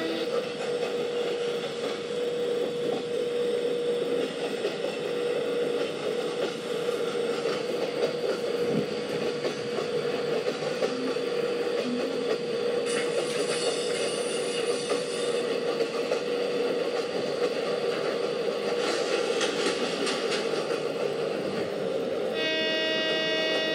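An electric train motor hums with a steady whine.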